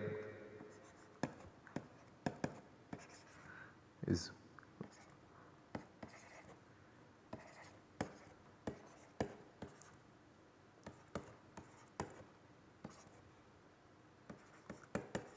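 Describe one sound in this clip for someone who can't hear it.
A pen scratches and taps on a writing tablet.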